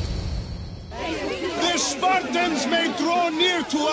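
A man speaks loudly and with force, addressing a crowd outdoors.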